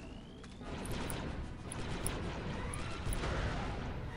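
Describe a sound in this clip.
Blaster shots fire in quick bursts.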